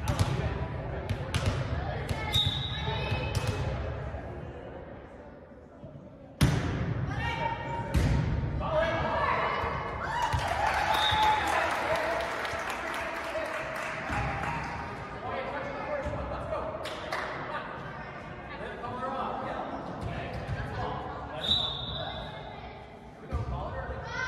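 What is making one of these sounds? A volleyball is struck with sharp slaps that echo in a large hall.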